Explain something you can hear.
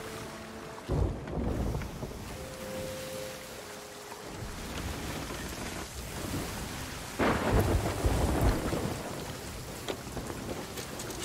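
Stormy waves crash and surge against a wooden ship.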